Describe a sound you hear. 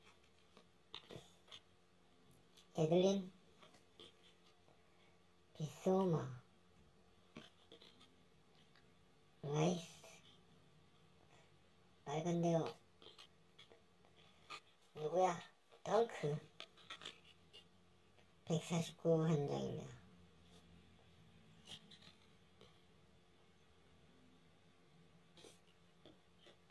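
Trading cards softly slide and click against each other in the hands.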